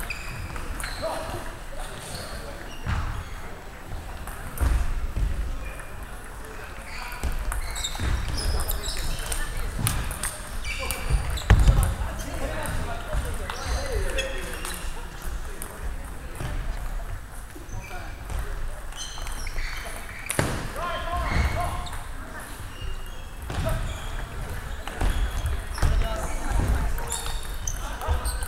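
A table tennis ball clicks back and forth off a table and paddles.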